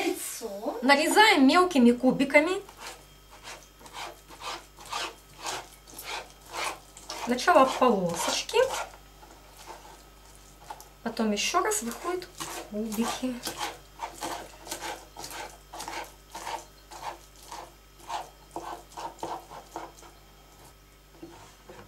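A knife chops food on a wooden cutting board with quick, repeated taps.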